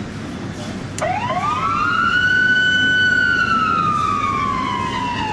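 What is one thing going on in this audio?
A police siren starts wailing and rises and falls.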